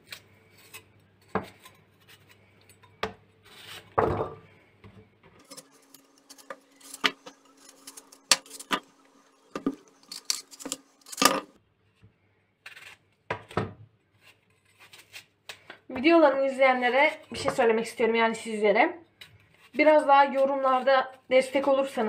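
A knife cuts and clicks through a crisp apple.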